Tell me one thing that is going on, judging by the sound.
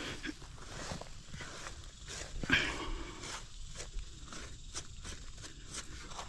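A hand scrapes and crumbles loose soil.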